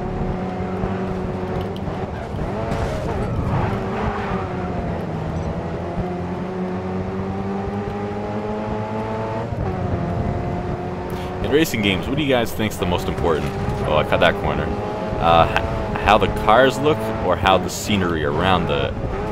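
A small car engine roars steadily and shifts pitch as it speeds up and slows down.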